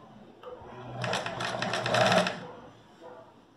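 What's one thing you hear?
A sewing machine runs, stitching fabric.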